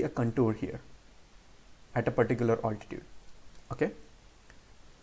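A man speaks calmly into a close microphone, in short phrases with pauses.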